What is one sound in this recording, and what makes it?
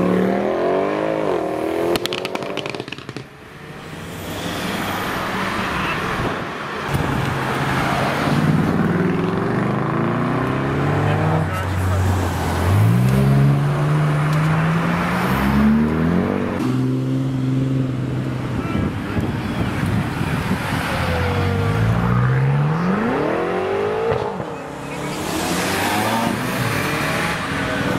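A sports car engine roars loudly as it accelerates away, rising in pitch.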